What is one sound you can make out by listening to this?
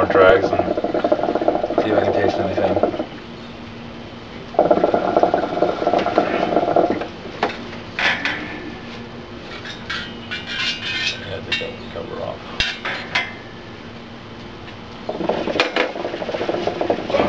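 Water bubbles and gurgles loudly in a hookah as smoke is drawn through it.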